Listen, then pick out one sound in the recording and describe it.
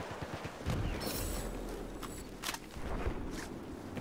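A rifle magazine clicks during a reload.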